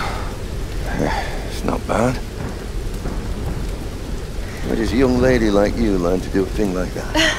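An elderly man speaks calmly and quietly, close by.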